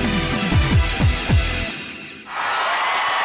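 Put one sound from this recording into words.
Electronic dance music plays with a heavy beat.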